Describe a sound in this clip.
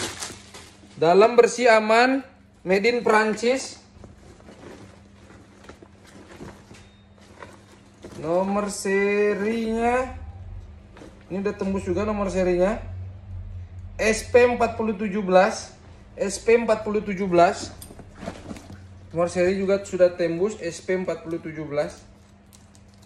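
A man talks calmly and close by, pausing often.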